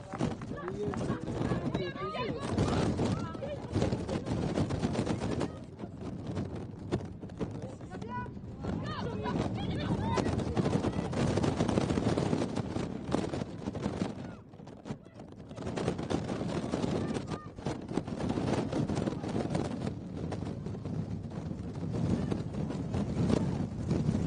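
Women players shout across an open field.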